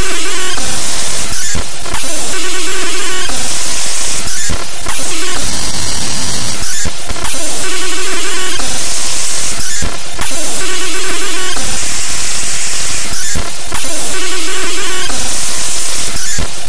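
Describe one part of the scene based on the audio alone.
Loud, harsh electronic music plays with a repeating beat.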